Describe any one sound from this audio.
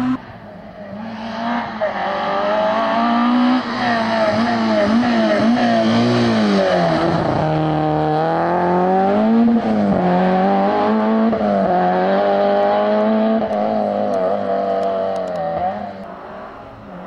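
A rally car engine revs hard and roars past, shifting gears as it speeds away.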